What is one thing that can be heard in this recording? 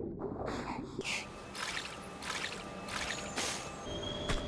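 Water splashes as a swimmer breaks the surface.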